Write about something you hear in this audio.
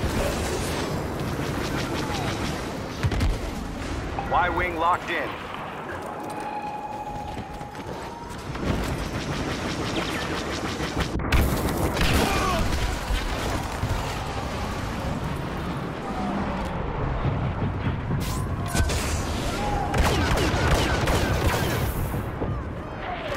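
A jet pack roars in a short burst.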